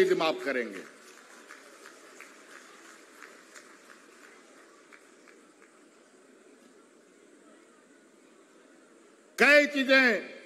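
A large crowd murmurs softly in the distance.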